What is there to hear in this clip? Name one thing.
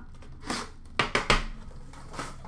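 A box is set down on a counter with a knock.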